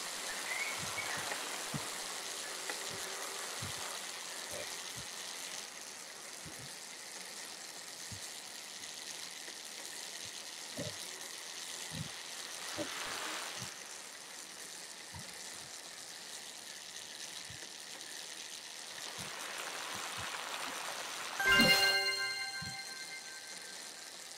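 A bicycle on an indoor trainer whirs steadily.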